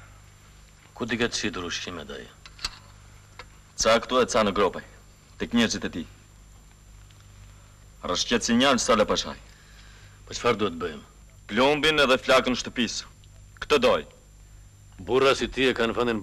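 A man speaks in a low, serious voice.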